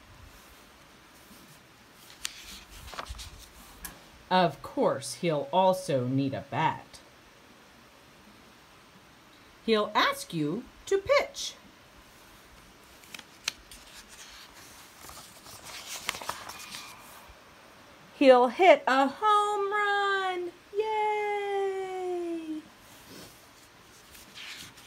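Paper pages rustle softly as they are turned.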